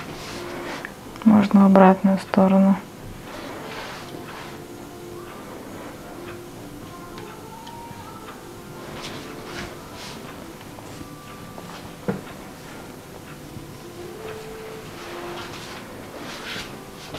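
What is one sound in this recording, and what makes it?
A wooden tool rubs softly over oiled skin.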